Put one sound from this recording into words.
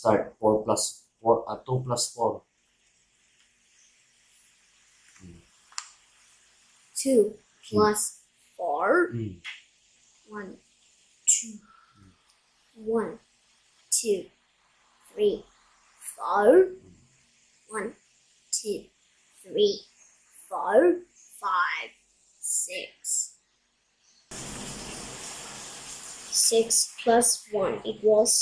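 A young boy reads out slowly and clearly, close by.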